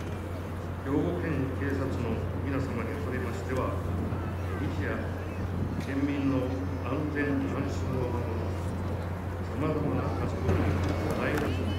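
An elderly man speaks calmly through a loudspeaker, echoing outdoors.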